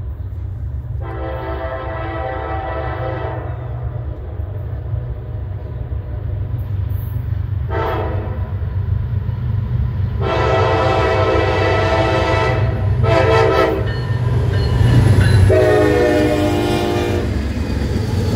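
A diesel train horn blows in several long blasts, close by.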